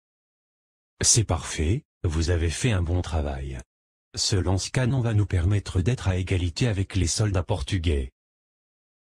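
A man speaks with animation, close to the microphone.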